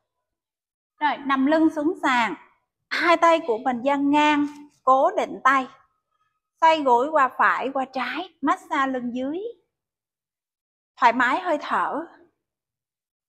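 A woman gives calm instructions close by.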